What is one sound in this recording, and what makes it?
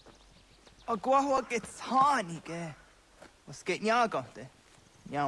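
A young man speaks haltingly, close by.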